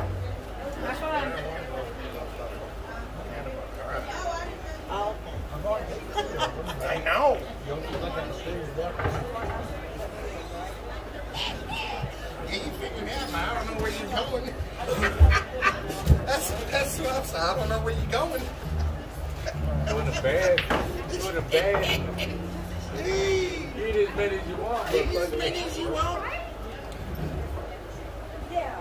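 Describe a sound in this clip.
Men and women talk and chatter in a busy, echoing room.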